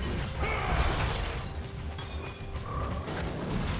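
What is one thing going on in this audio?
Magical spell effects whoosh and shimmer.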